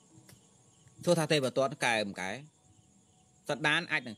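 A young man speaks calmly close to the microphone.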